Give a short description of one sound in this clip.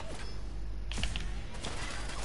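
A heavy gun fires with a loud blast.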